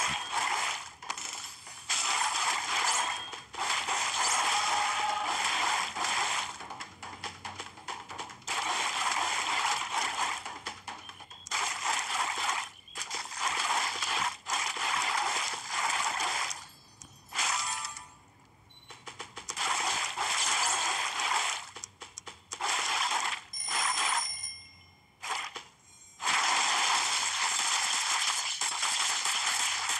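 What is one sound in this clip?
Juicy fruit splatters with wet squelches.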